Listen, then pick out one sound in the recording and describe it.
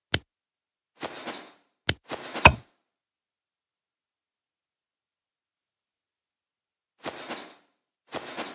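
Stone tiles slide with a short grinding scrape.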